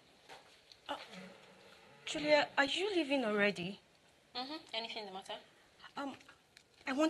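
A young woman speaks firmly nearby.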